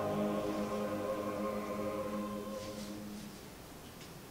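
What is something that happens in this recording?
A choir holds a final sung chord that fades away in a hall.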